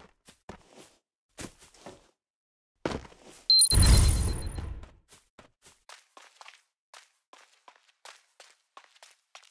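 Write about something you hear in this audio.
Quick footsteps patter on pavement.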